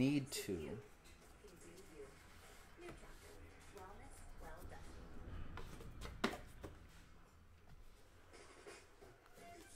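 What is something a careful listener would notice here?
Trading cards rustle and tap in a man's hands.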